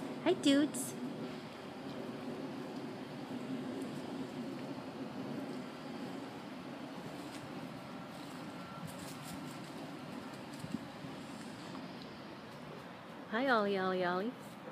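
A cat meows loudly nearby.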